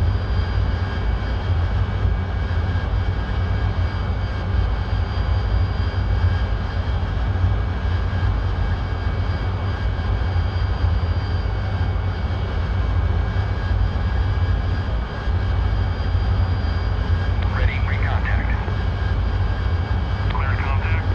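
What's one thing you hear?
A jet engine roars steadily from inside a cockpit.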